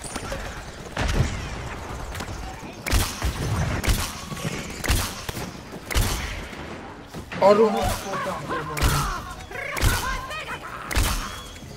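Cartoonish shots fire in quick bursts.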